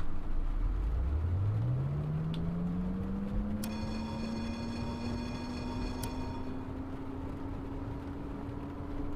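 A tram's electric motor whines, rising steadily in pitch as it speeds up.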